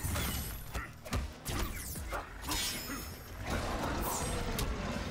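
Punches and kicks land with heavy thuds in a fast fight.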